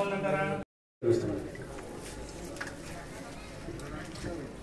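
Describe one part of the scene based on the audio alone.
A crowd murmurs in an echoing room.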